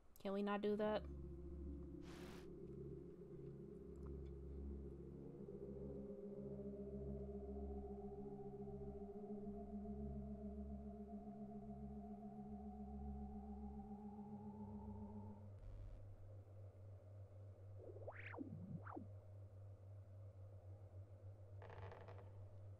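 Slow, eerie game music plays steadily.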